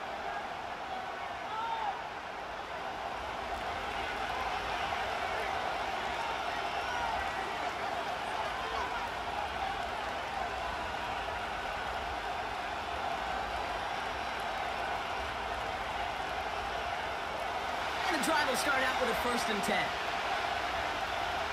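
A large stadium crowd roars and murmurs steadily.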